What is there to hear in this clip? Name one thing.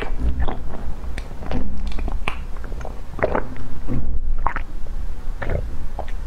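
A young woman gulps water close to a microphone.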